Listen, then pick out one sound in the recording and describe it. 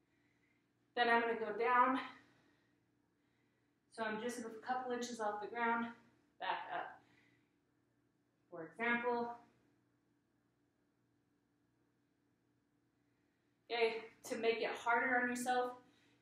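A young woman talks calmly, close by, in short bursts with pauses.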